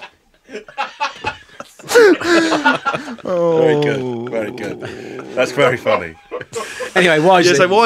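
Several men laugh together into microphones.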